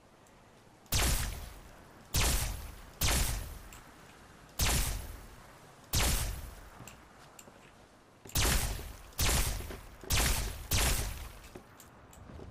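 Energy weapon blasts crackle in sharp bursts.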